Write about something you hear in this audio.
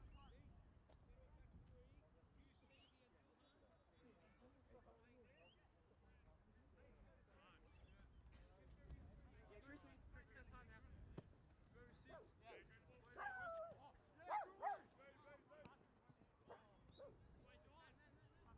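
Young players shout to each other across an open field outdoors.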